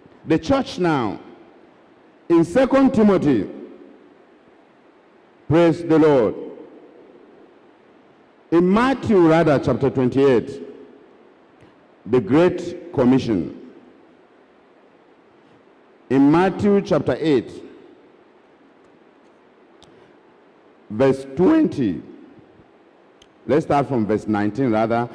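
A man preaches loudly and forcefully through a microphone in short bursts, echoing around a large hall.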